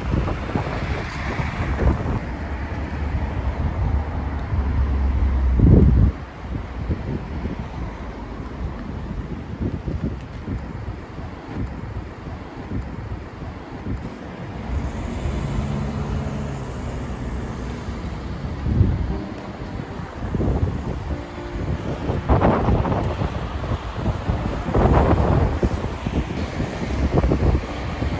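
Cars and trucks drive past on a nearby road.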